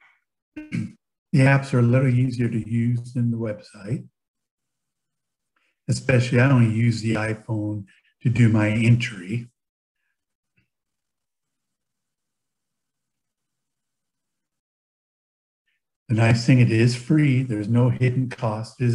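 A man speaks calmly through a microphone on an online call, pausing between phrases.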